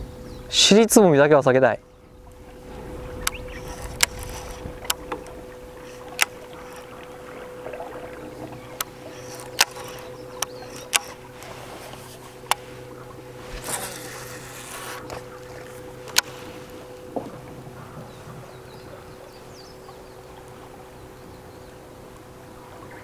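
Water laps gently against a boat hull.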